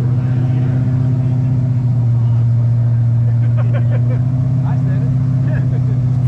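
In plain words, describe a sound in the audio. A drag car's engine idles with a loud, steady, lumpy rumble.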